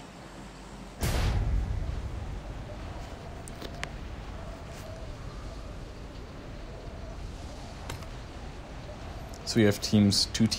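Wind rushes loudly past during a fall through the air.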